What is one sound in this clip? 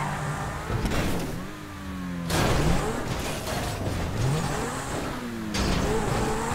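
A car crashes and tumbles with loud metal bangs.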